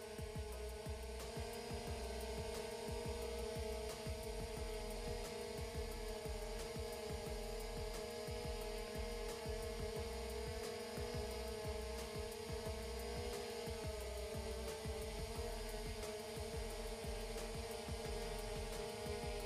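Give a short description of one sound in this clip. A drone's propellers buzz steadily overhead.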